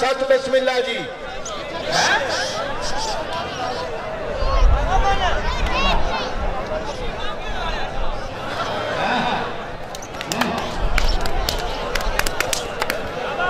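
A large crowd shouts and cheers outdoors.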